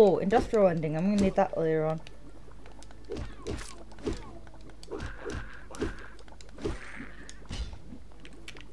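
A sword slashes and strikes a monster with sharp impacts.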